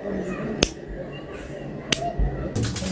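A lighter clicks as it is flicked.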